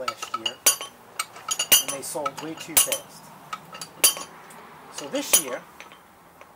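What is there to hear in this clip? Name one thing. Metal clinks and scrapes against a steel vise.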